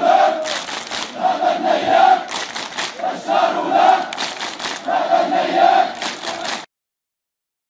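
A large crowd claps along.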